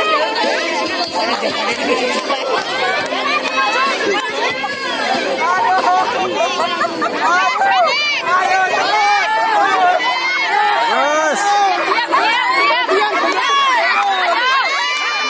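A crowd of children shouts and cheers excitedly nearby.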